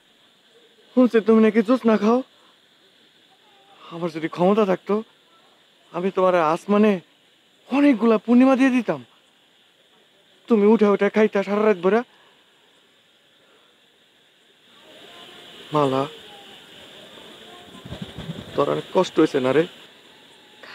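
A young man sings with feeling into a microphone, close by.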